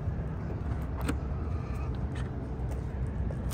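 A charging plug clicks against a car's charge port.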